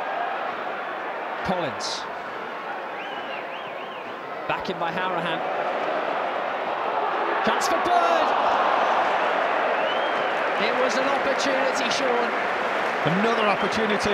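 A large stadium crowd roars and cheers, swelling loudly.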